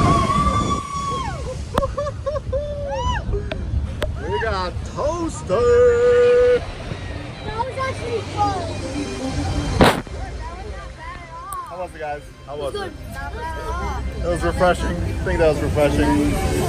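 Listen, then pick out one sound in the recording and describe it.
Water rushes and splashes around a raft.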